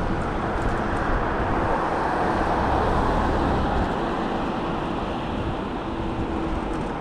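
A car passes close by and drives away.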